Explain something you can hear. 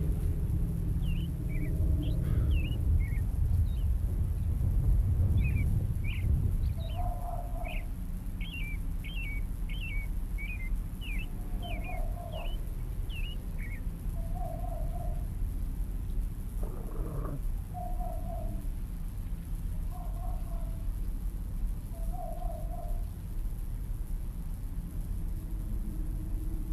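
Wind blows steadily with a low rumble.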